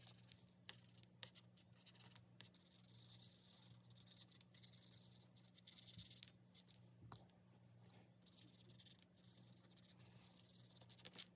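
A marker squeaks and scratches on paper in short strokes.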